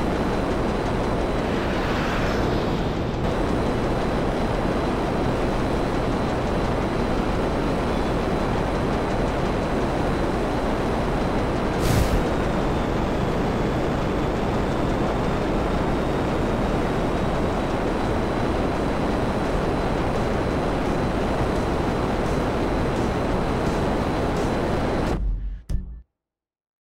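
A jet engine roars steadily and loudly.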